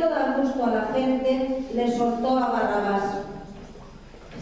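A man sings a sustained chant in a large echoing hall.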